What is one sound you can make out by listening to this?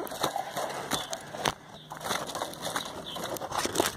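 A wooden cage rattles and knocks as it is handled.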